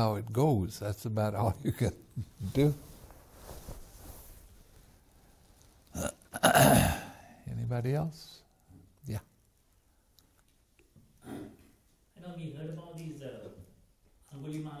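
An elderly man speaks calmly and warmly through a close microphone.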